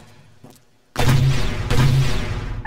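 A gun fires loudly in quick bursts.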